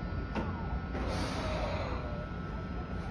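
Air hisses briefly from a train's brakes.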